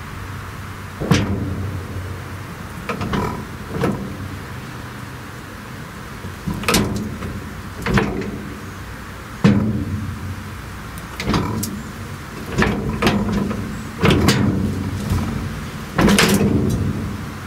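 Metal brake parts clank and grind repeatedly, with a short ringing after each clank.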